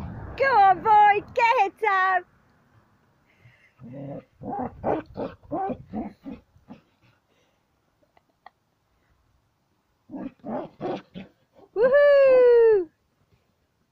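A dog yips and whines excitedly close by.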